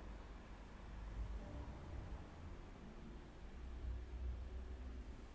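A man chants slowly into a microphone, heard close.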